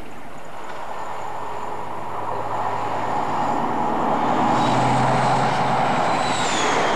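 A diesel engine drones as a train approaches.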